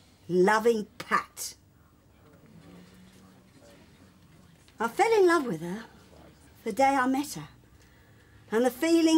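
An older woman speaks with emotion close by, in short bursts.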